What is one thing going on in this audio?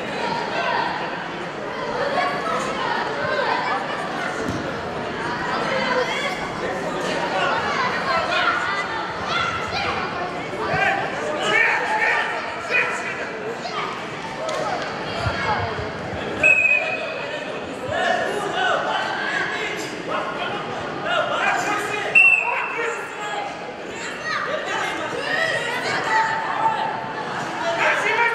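A crowd of children and adults chatters and shouts in an echoing hall.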